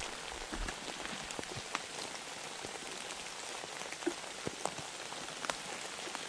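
Boots step on a dirt trail.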